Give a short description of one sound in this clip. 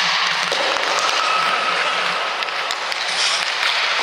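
A hockey stick smacks a puck.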